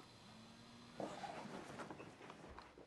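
Bedding rustles as someone shifts about close by.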